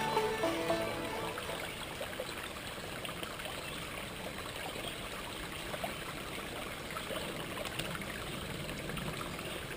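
A man splashes his hands in the water.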